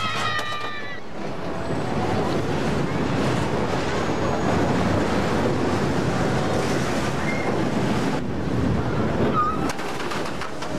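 A roller coaster train rattles and roars along its track.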